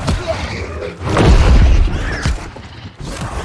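Deep magical blasts boom and rumble.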